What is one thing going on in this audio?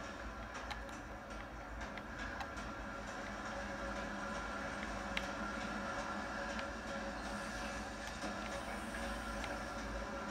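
Game sounds play from a television's speakers, with steady hum and sharp clicks.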